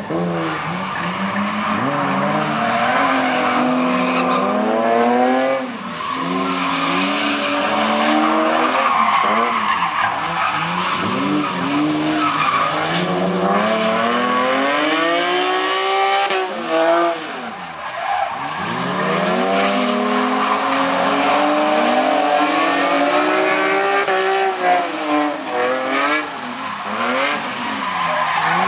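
Car engines rev hard and roar, rising and falling.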